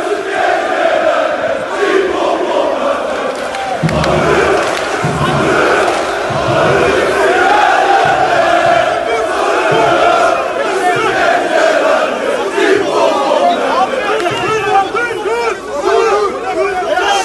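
A large crowd of men chants loudly together outdoors.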